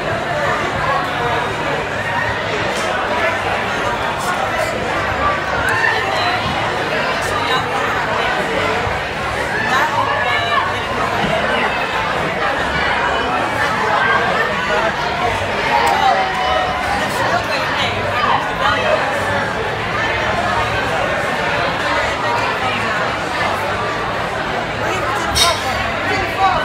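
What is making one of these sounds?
Many voices chatter in a busy room.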